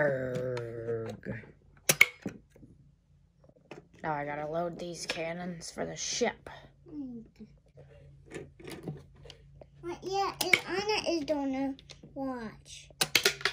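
Plastic toy parts click and knock as they are handled.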